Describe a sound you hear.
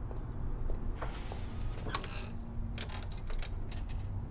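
Coins clink into a payphone slot.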